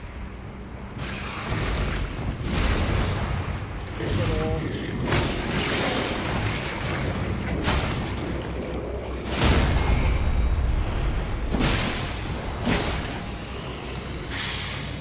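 A huge creature growls and roars with deep rumbling.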